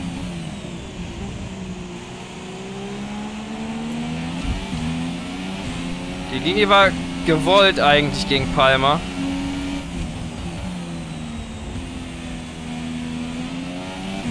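A racing car engine drones and whines, rising and falling in pitch as it shifts gears.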